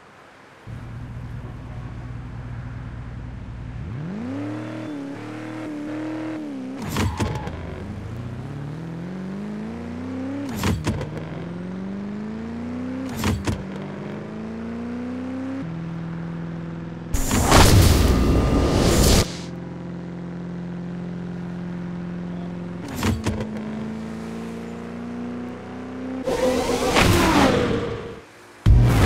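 A car engine idles and revs up, then roars as it accelerates through the gears.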